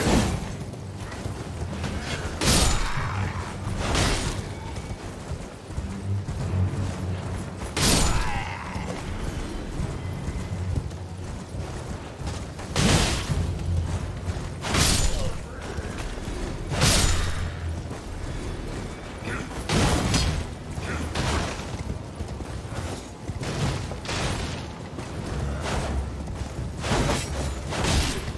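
Horse hooves pound steadily at a gallop.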